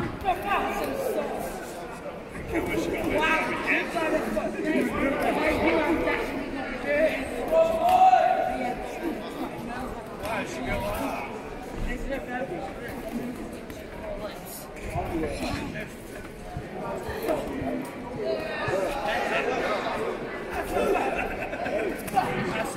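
A crowd of people shouts and cheers in a large echoing hall.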